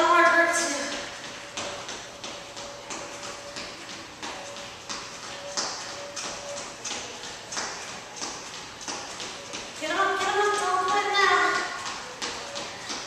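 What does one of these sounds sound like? Sneakers tap and thud on a wooden floor in quick steps.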